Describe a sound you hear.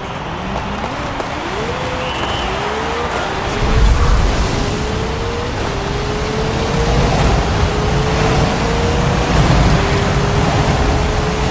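A racing car engine revs up hard, climbing in pitch and dropping back with each gear change.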